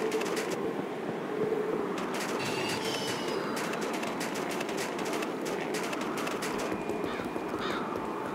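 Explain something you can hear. A wintry wind blows steadily.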